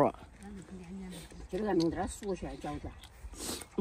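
An elderly woman bites and chews food.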